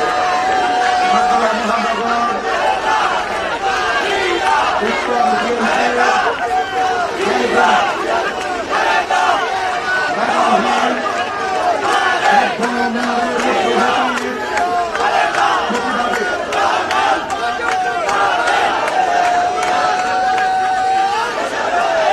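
An elderly man speaks forcefully into a microphone outdoors.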